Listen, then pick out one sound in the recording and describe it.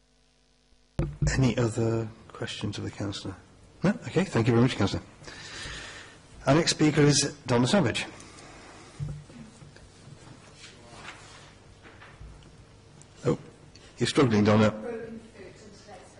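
An older man speaks calmly and slowly into a microphone.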